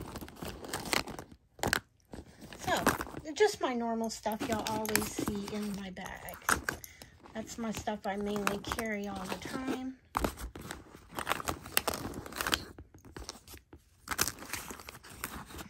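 Small plastic items knock and rustle as a hand packs them into a fabric pouch.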